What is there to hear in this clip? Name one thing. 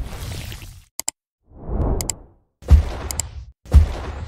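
A mouse button clicks sharply.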